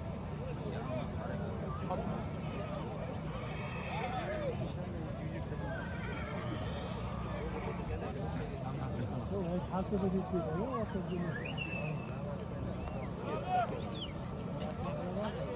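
A crowd of men shout and call out all around.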